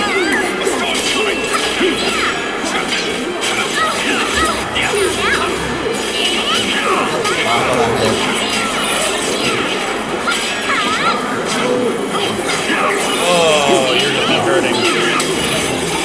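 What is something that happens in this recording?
Magical attacks whoosh and crackle.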